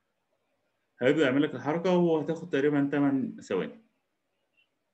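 A man speaks calmly through a microphone in an online call.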